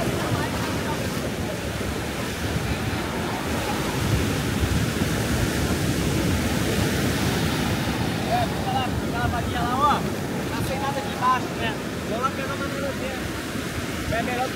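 A crowd of people chatter.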